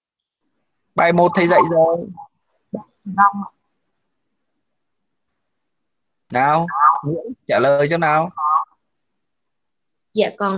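A man speaks calmly in short bursts over an online call.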